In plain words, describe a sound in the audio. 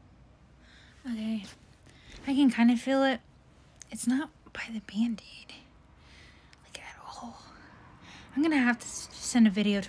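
A young woman talks casually and close up.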